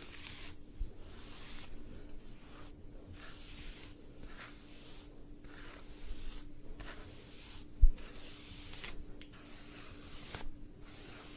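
A brush swishes through long hair in steady, repeated strokes.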